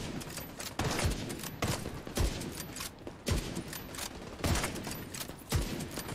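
A rifle fires sharp shots in bursts, with booming echoes.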